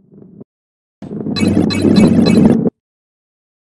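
Bright chimes ring as coins are collected.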